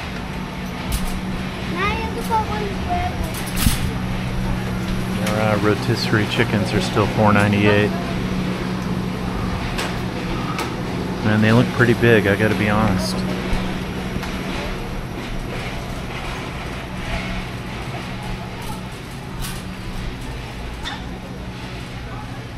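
A shopping cart rolls steadily over a smooth floor.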